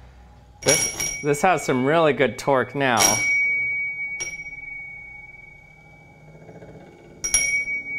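A metal tool squeals and screeches against a spinning disc.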